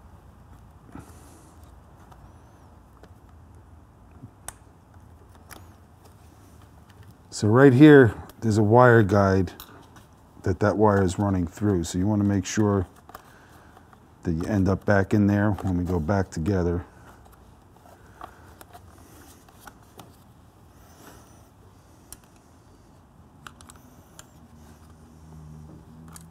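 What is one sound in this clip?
Small metal parts click and tap as they are handled.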